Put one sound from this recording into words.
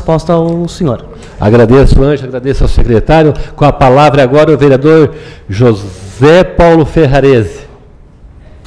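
A man speaks steadily through a microphone in a large room.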